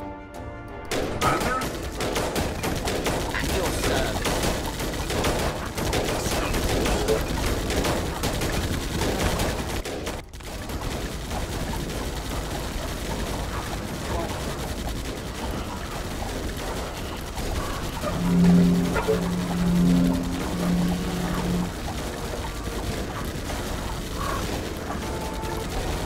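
Dense battle noise of gunfire and clanking rattles on steadily.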